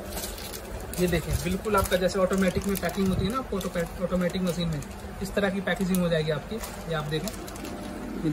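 Plastic bags crinkle as they are handled.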